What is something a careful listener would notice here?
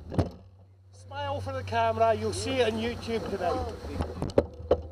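A man speaks calmly from inside a car, muffled by the window.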